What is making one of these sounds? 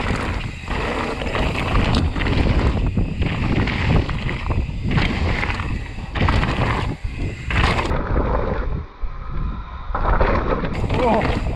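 Bicycle tyres crunch and rattle over loose stones.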